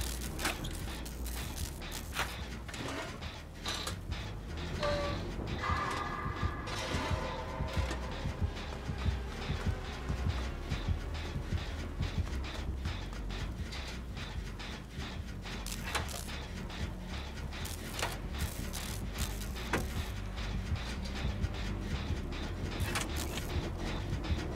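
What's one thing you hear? A heavy machine rattles and clanks as it is worked by hand.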